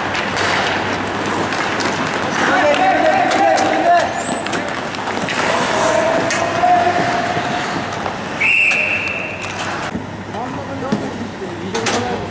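Sounds echo around a large indoor rink.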